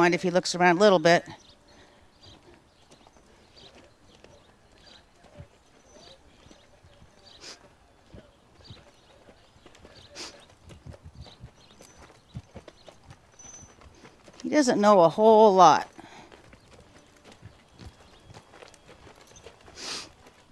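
A horse's hooves thud softly on sand as it walks.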